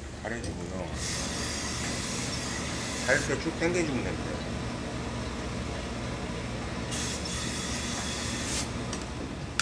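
A steam iron hisses in short bursts.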